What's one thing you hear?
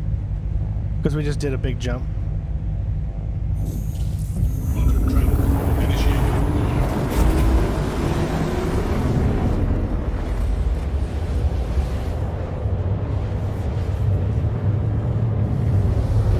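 A spaceship engine rumbles steadily, growing louder as it speeds up.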